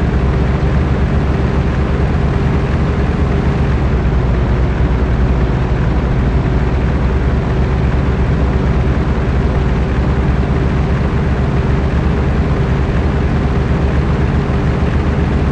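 Tyres roll over a gravel road.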